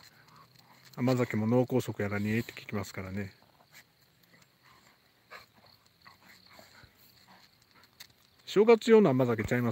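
Two dogs growl and grumble playfully at close range.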